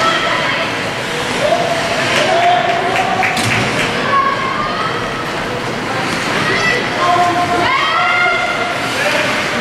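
A crowd of spectators shouts and cheers in an echoing rink.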